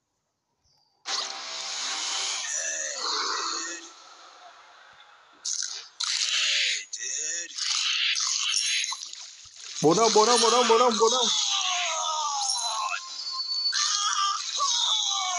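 Video game sound effects of splashing and rushing water play.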